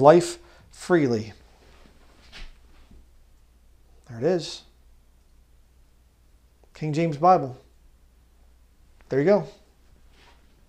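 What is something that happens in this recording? A man speaks calmly and emphatically into a microphone, with pauses between phrases.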